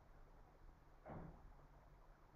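A plastic blender lid pops off with a click.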